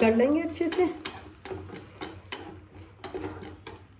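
A wooden spatula scrapes and stirs food in a frying pan.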